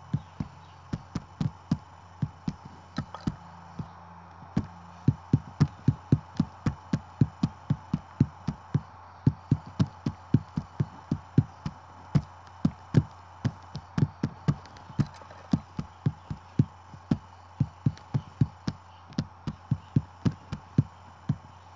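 Sharp electronic tap sounds click in a quick, steady rhythm.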